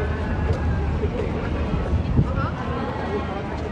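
Several people chatter in the background outdoors.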